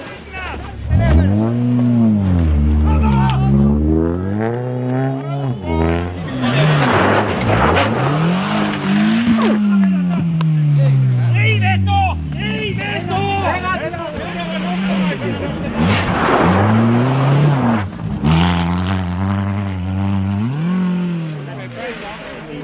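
A rally car engine revs hard, rising and falling.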